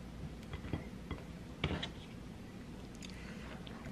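Tomatoes are set down on a plate with soft taps.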